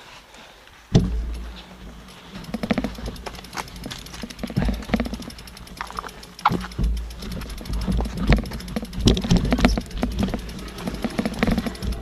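A mountain bike rattles and bumps over a rocky trail.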